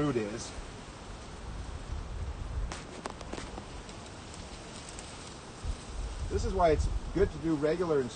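Wind gusts briefly outdoors, rustling through tall grass.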